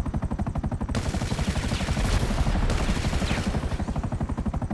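An explosion bursts loudly and fades.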